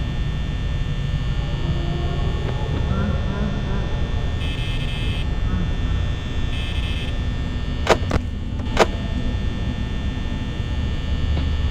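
A desk fan whirs with a steady low hum.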